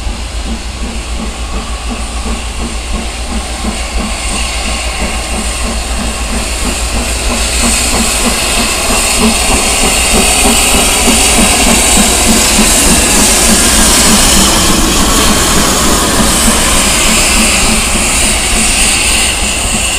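A steam locomotive chuffs in a steady, quick rhythm, growing louder as it draws near.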